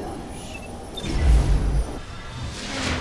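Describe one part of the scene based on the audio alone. A deep rumbling whoosh sounds.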